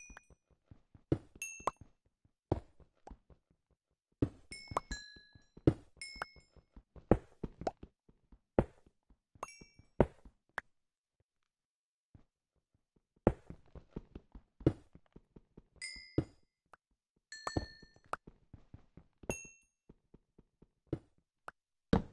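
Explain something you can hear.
A pickaxe chips and cracks at stone in quick knocking bursts.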